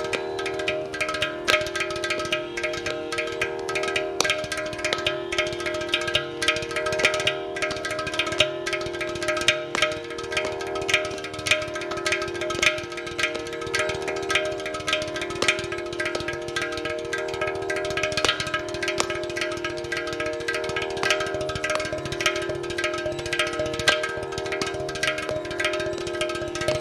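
A hand drum beats a fast rhythm.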